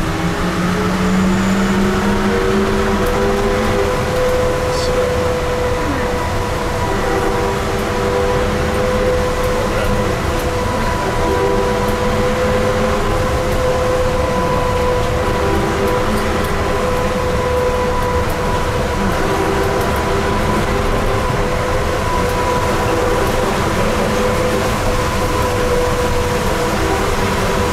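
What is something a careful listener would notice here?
A vehicle's engine hums steadily with a rumble that echoes through a tunnel.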